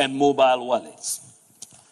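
A man speaks calmly through a microphone and loudspeakers in a large hall.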